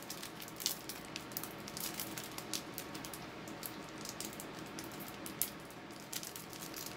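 Foil wrapping crinkles and rustles close by as it is torn open.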